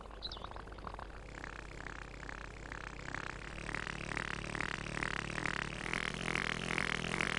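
A small mechanical device whirs as it rises.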